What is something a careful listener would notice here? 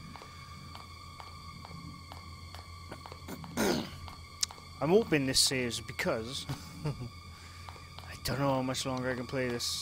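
Footsteps tap slowly on a hard tiled floor.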